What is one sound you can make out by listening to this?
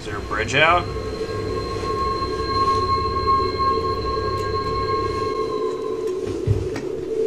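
A car engine rumbles low and steadily.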